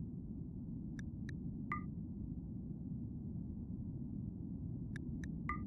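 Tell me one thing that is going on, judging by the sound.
Short interface clicks and chimes sound a few times.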